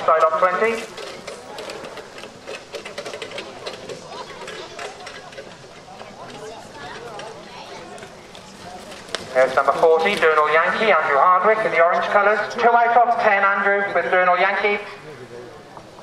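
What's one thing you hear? A horse's hooves thud on soft grass at a trot nearby.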